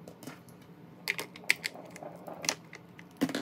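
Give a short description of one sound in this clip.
Small plastic cosmetic items click and tap against a clear plastic organizer.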